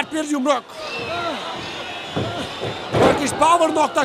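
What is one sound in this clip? A body slams down hard onto a wrestling mat.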